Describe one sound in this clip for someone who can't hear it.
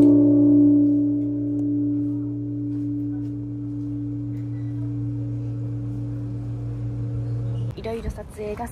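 A large bronze temple bell hums deeply as it rings out and slowly fades.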